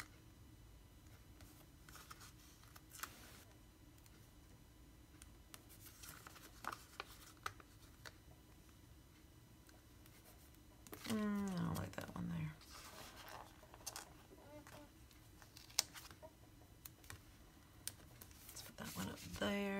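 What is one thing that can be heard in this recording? Paper rustles and crinkles under fingers.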